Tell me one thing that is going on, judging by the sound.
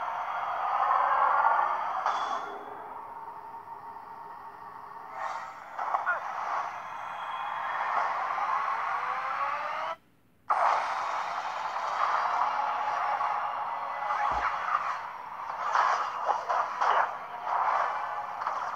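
Dramatic music plays through a small, tinny speaker.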